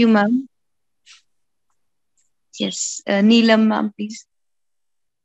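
A young woman speaks cheerfully over an online call.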